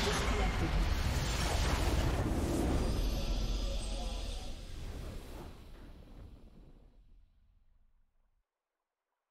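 A triumphant victory fanfare swells and then fades away.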